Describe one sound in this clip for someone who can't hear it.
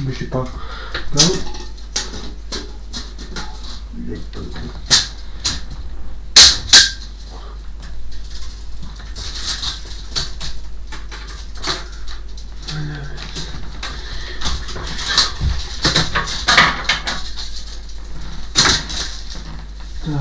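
Knocks and clicks sound from a wooden wardrobe.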